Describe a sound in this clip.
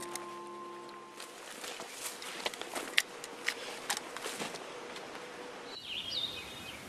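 Twigs and dry branches snap and rustle as a man pushes through brush.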